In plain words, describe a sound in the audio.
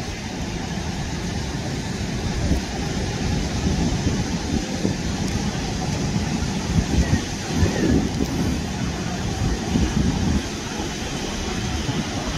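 Waves crash and wash over rocks nearby.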